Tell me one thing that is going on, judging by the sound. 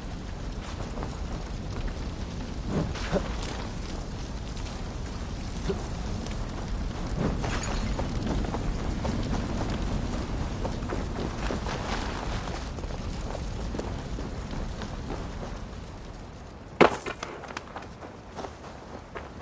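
Footsteps crunch and thud quickly over ground and wooden planks.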